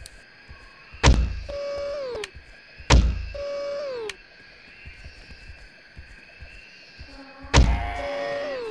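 A crossbow fires with a sharp, heavy thud.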